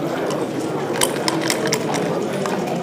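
Dice rattle in a cup and tumble across a board.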